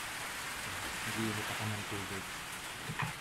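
A man speaks quietly, close to the microphone.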